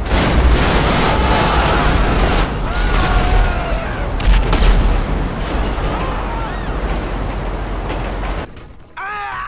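Loud explosions boom and rumble deeply.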